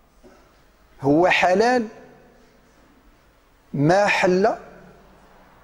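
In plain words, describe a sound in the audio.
A middle-aged man preaches with animation through a microphone, in an echoing hall.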